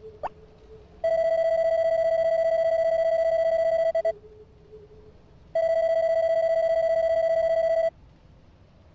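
A steady electronic beep drones in two long bursts.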